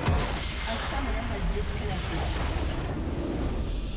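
Game spell effects crash and burst loudly in a battle.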